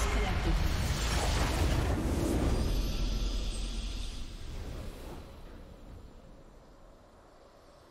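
A huge crystal bursts apart with a loud rumbling blast that slowly fades.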